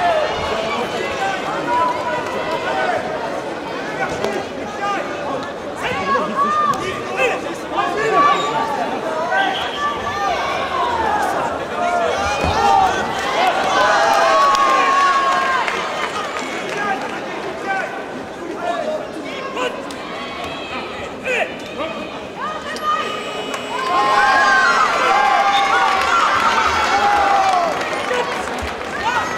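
A crowd in a large echoing hall shouts and cheers.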